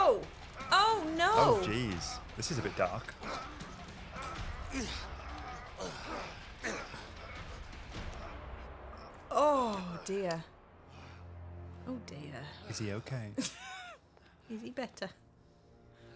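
Men grunt and groan, straining close by.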